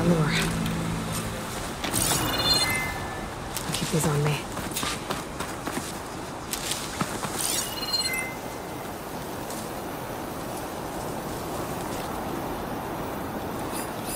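Footsteps rustle through tall grass and brush.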